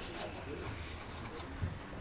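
A bone folder scrapes across a book cover.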